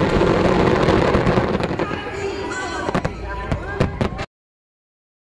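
Fireworks crackle and bang loudly, echoing outdoors.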